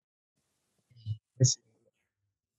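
A young woman speaks briefly through an online call.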